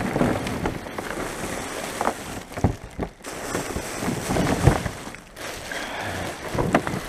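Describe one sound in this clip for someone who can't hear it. Plastic bin bags rustle inside a bin.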